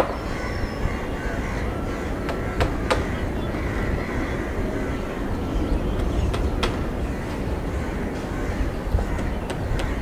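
A jet airliner's engines roar steadily as it rolls along a runway.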